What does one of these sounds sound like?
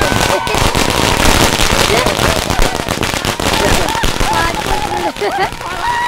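Firecrackers crackle and bang rapidly.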